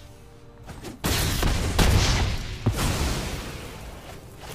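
A heavy whooshing crash rings out as an attack strikes.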